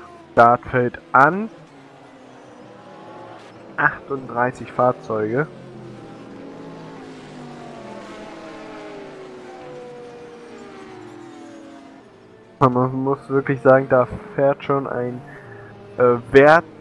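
Racing car engines whine and roar past.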